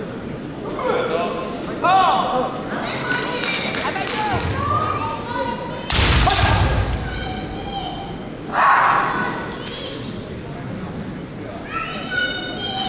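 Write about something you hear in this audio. Fighters shout loudly in a large echoing hall.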